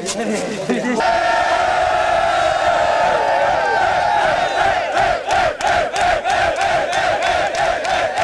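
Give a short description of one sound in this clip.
A crowd of men and women chants loudly.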